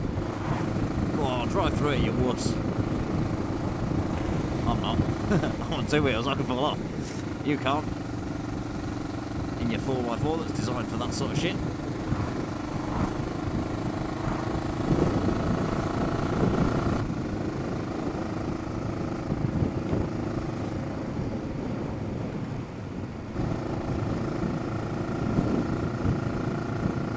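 Wind rushes past the microphone.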